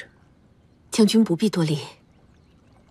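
A middle-aged woman speaks kindly.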